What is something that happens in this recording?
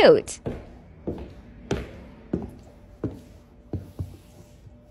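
Bare feet step on a wooden floor.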